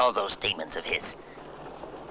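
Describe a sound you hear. A man speaks in a low, hushed voice close by.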